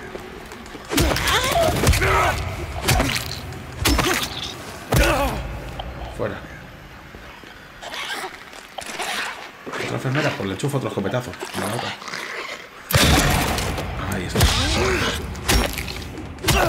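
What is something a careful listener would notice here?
A metal pipe strikes flesh with heavy thuds.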